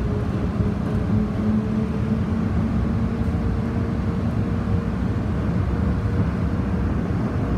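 A train's motor hums with a steady whine that fades.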